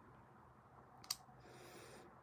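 A plastic nail tip clicks onto a plastic stand.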